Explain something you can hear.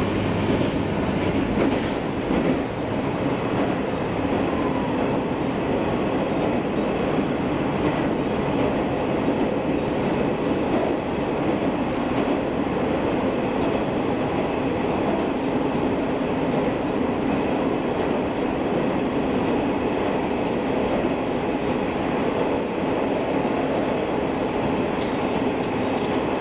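A train rumbles and rattles steadily along the tracks, heard from inside a carriage.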